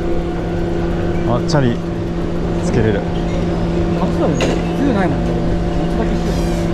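A chairlift's machinery hums steadily close by.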